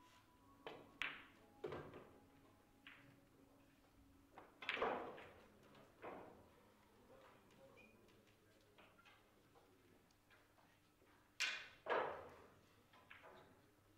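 Billiard balls click against each other and roll.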